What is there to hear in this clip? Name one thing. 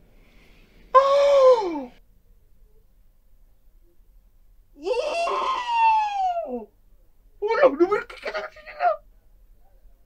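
A young man gasps and exclaims loudly close to a microphone.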